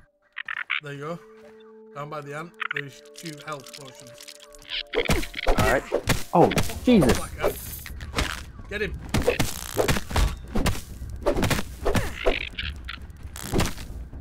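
Weapon blows strike a giant insect.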